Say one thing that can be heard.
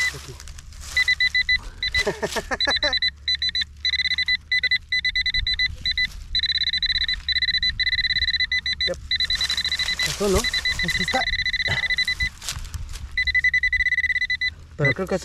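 A handheld pinpointer beeps rapidly and repeatedly over loose soil.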